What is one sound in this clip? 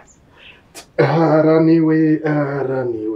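A man groans with strain while lifting a heavy weight.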